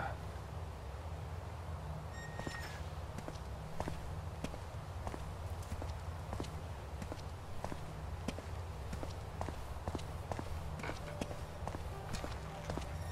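Footsteps walk steadily on stone.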